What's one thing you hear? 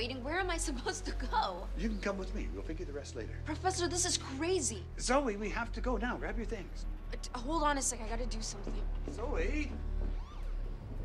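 A young woman speaks with emotion close by.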